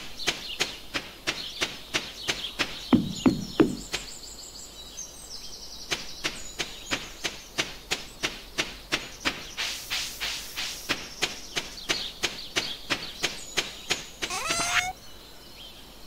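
Light footsteps patter quickly and steadily along a path.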